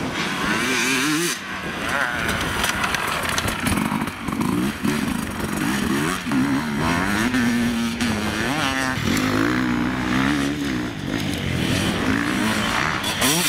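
A dirt bike engine revs loudly, rising and falling in pitch.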